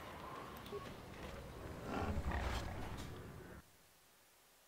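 A large metal door slides open.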